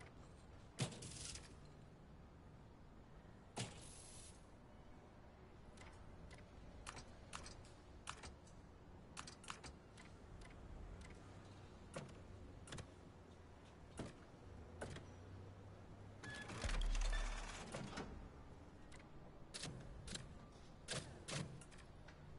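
Short game menu clicks tick now and then.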